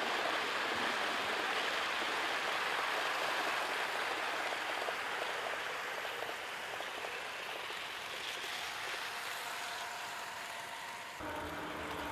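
Model trains rattle and hum steadily along plastic tracks outdoors.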